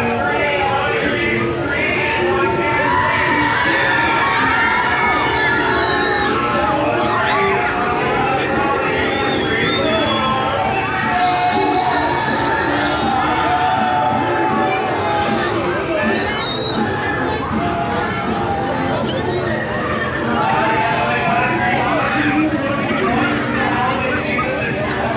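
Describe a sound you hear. A crowd of people chatters and calls out nearby outdoors.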